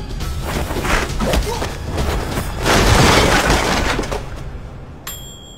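Two men scuffle and crash into shelves.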